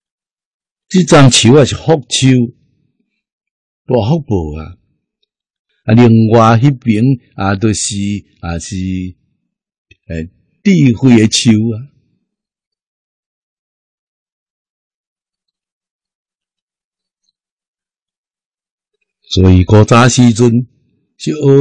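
An elderly man speaks calmly into a close microphone, with pauses.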